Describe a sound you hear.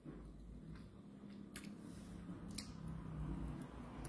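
A young woman bites into a crunchy snack.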